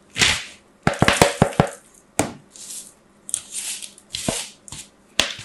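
A bar of soap scrapes across a grater in short rasping strokes.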